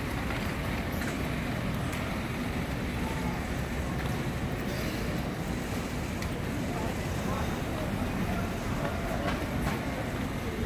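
Faint voices of passing people murmur nearby.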